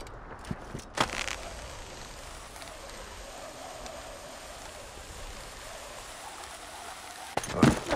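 A rope whirs steadily.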